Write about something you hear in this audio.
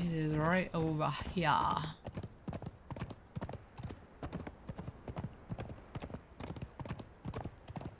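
A horse's hooves thud on dry ground at a steady gallop.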